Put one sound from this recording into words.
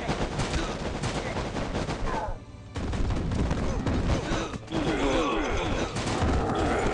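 Game battle sounds clash and thud rapidly, with swords striking and explosions.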